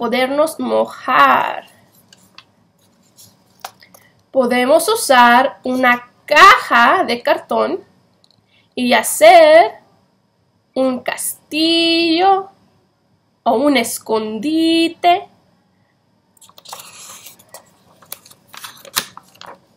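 A page of a book rustles as it is turned.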